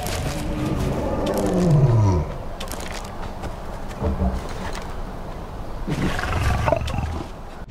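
Footsteps rustle through grass and undergrowth.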